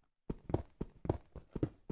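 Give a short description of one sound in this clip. A pickaxe chips at stone blocks.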